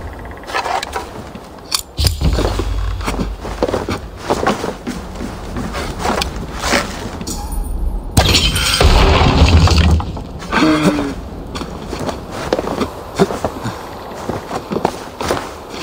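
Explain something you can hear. Footsteps thud and creak on wooden planks.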